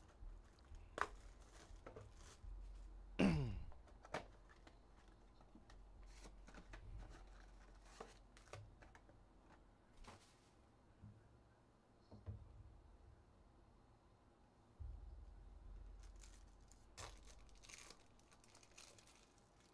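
Trading cards tap and shuffle on a table.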